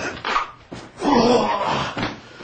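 Concrete blocks crack and break under a strike.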